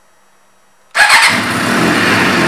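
An inline-four sport motorcycle engine starts up.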